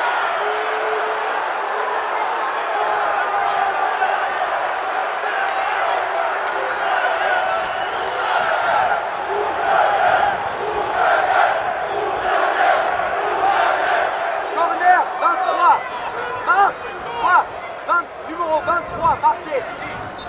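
A stadium crowd chants and cheers steadily outdoors.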